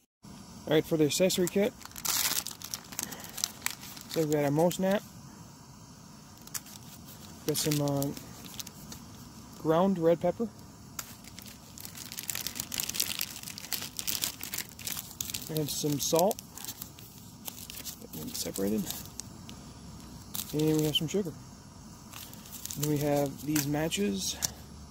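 Plastic and foil packets crinkle and rustle as they are handled.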